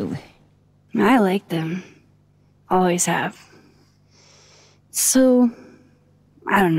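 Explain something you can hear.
A young woman answers softly and hesitantly.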